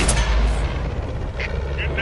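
An explosion bursts as a tank is hit.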